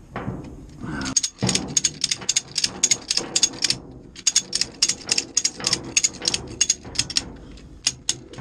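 A ratchet strap clicks rapidly as it is cranked tight.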